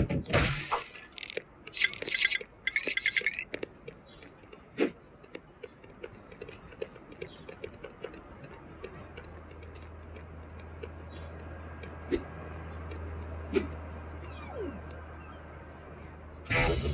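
Buttons on a handheld game console click under the thumbs.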